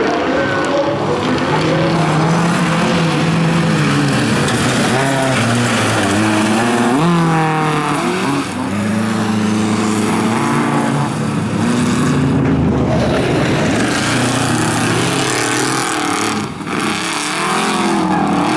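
Tyres skid and spray loose gravel.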